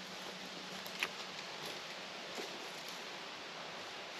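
Footsteps crunch on dry leaves and twigs.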